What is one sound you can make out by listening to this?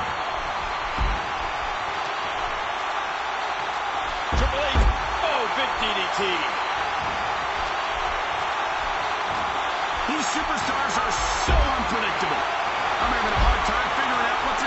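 Heavy thuds of bodies hitting a wrestling ring.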